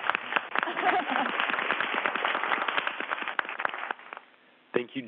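A man speaks through a microphone over a radio link.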